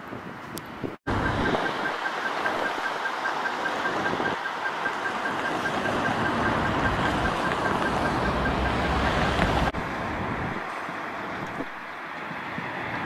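Cars drive past on a busy city road.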